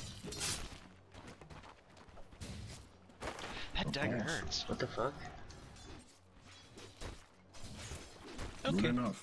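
Fantasy battle effects whoosh and crackle in quick bursts.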